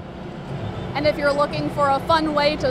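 A young woman speaks clearly into a microphone, reporting.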